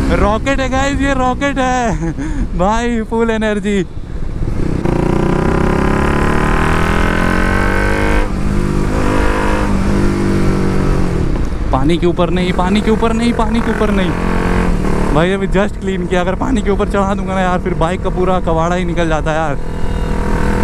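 A motorcycle engine revs hard up and down in quick bursts.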